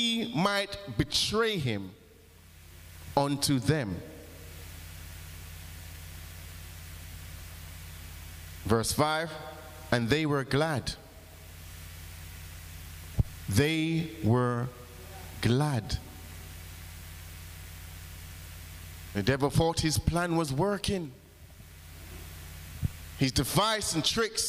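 A man speaks with feeling into a microphone in short bursts, with pauses between them.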